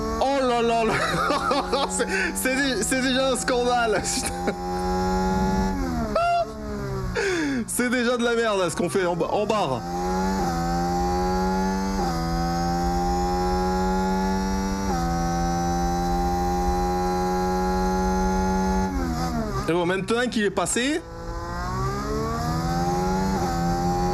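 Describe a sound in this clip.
A racing car engine whines at high revs, dropping in pitch at each gear change.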